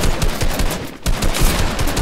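A gun fires repeatedly.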